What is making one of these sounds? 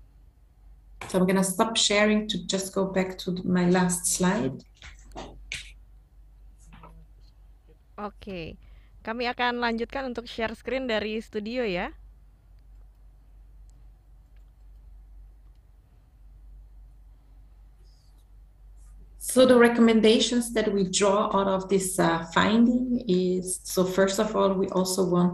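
A woman speaks calmly through an online call.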